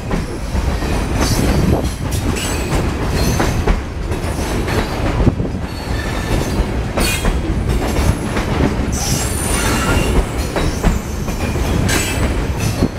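A freight train rumbles past close by, its wheels clattering and squealing on the rails.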